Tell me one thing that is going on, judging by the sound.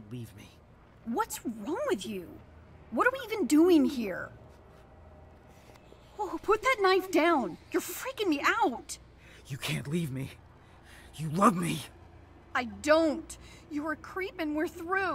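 A young woman shouts in fear and anger.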